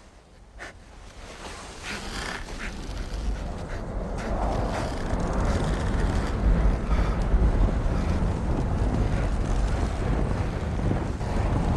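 A strong wind roars and howls, growing louder.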